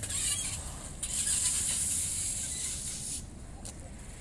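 Bicycle tyres roll across concrete.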